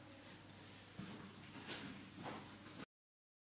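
Footsteps walk away on a hard floor.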